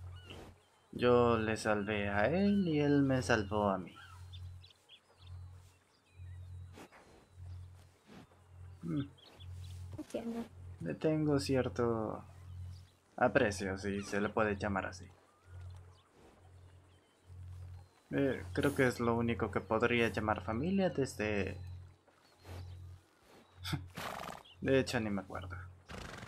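A man speaks calmly in conversation, close by.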